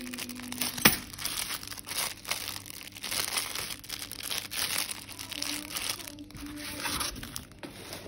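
A cardboard box rustles as hands handle it.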